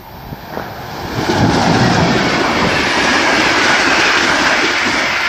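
An electric locomotive hauls passenger carriages past close by.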